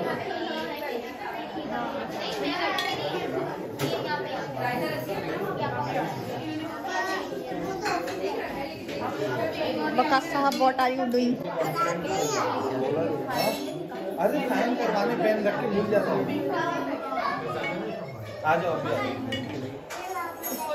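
Several people talk over one another close by.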